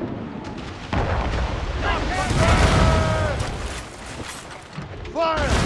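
Cannons fire with deep, loud booms.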